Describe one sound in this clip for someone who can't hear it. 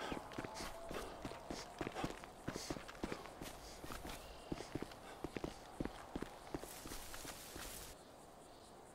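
Footsteps run through tall grass.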